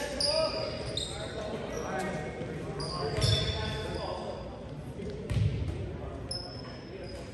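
Young players call out to each other in a large echoing gym.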